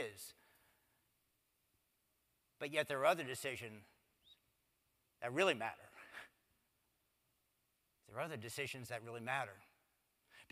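A middle-aged man speaks with animation into a microphone, in short phrases with pauses, in a slightly echoing room.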